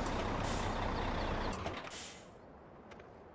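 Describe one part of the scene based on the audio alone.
A big truck's diesel engine rumbles loudly, then cuts off.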